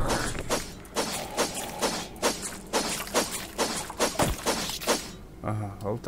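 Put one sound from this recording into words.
A machete hacks into flesh.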